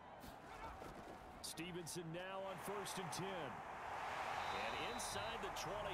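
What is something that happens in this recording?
Football players collide and thud in a tackle.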